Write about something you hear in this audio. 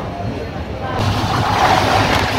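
A train roars past close by.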